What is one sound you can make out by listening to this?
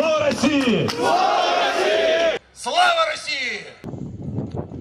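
A man speaks forcefully into a microphone, heard over loudspeakers outdoors.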